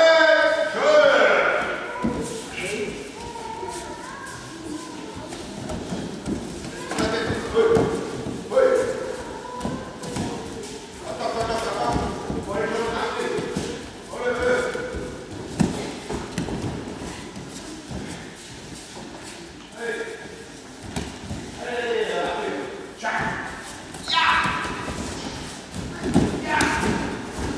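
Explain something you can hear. Children's voices call out and chatter in a large echoing hall.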